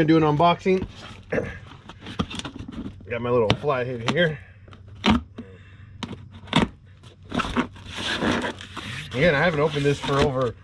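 A cardboard box scrapes and thumps on stone paving.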